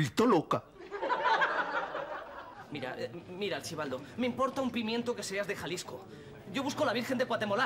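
A group of people talk over one another.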